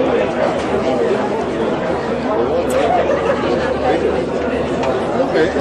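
A crowd of men and women chatter loudly in a large echoing hall.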